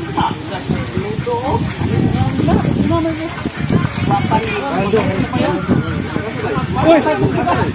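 Several young men talk casually nearby, outdoors.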